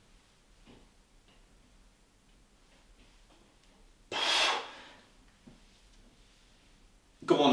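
A man breathes hard during exercise.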